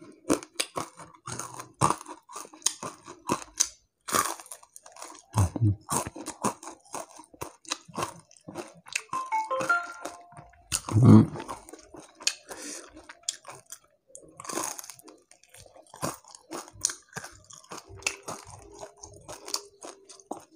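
A young man chews crunchy fried food close to a microphone.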